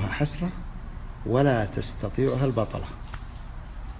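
A man speaks calmly and close to a phone microphone.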